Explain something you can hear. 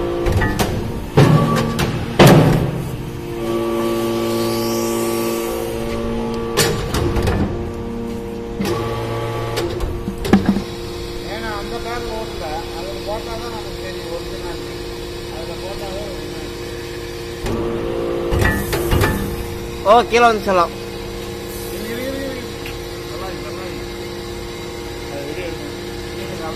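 A briquetting press machine hums steadily.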